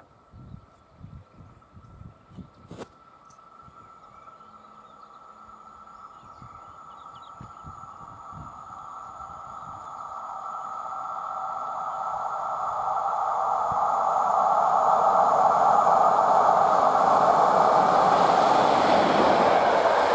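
A train approaches from a distance and rumbles past close by, growing steadily louder.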